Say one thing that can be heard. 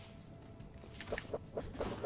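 A sword swishes through the air with a magical whoosh.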